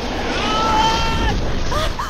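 A young woman gasps in shock nearby.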